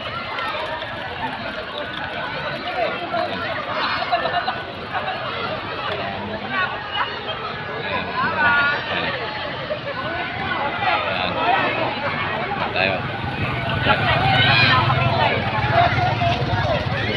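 Water splashes as people swim.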